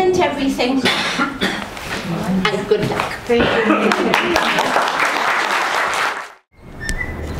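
An elderly woman speaks calmly.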